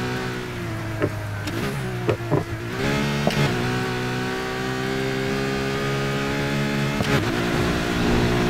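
Exhaust pops and crackles from a sports car.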